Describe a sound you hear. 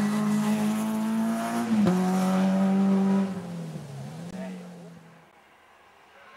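A rally car engine roars loudly close by and drops in pitch as the car speeds past.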